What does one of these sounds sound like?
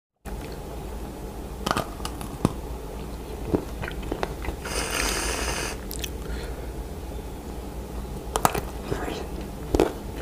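A man bites and chews crunchy food close to the microphone.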